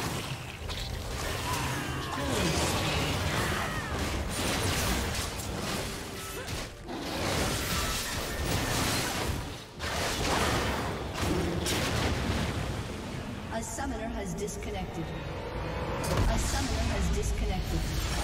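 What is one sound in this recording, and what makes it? Video game spell effects whoosh and crackle in a fight.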